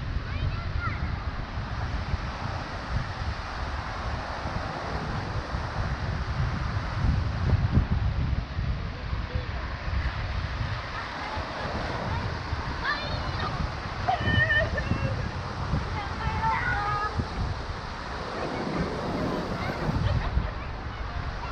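Water rushes steadily over a low weir.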